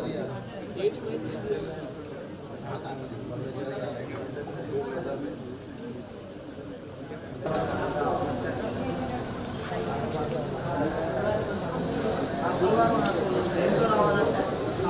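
A crowd of men and women murmur and talk over one another in a busy room.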